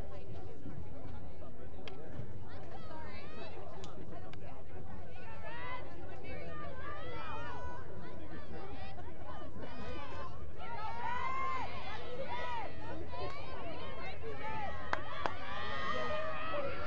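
Young women call out to each other faintly across an open field.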